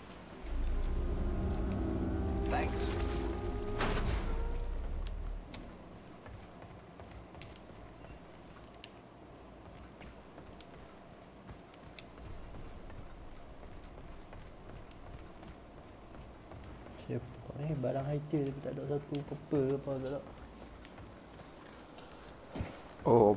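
Footsteps thud quickly across wooden floors.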